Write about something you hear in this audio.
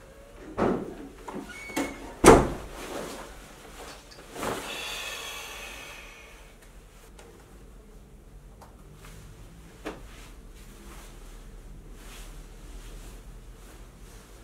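Clothing rustles as a jacket is pulled on and off.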